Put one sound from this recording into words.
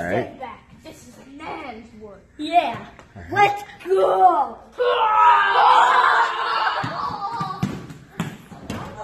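Young boys talk and shout excitedly close by.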